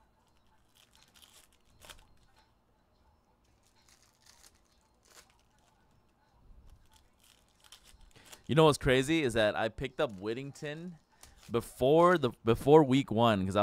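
A foil card pack crinkles and tears as it is opened.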